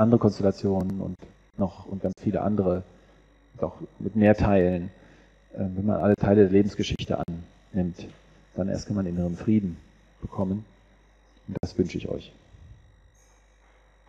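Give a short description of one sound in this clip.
A man speaks into a microphone in a calm, lecturing way, heard through loudspeakers in an echoing hall.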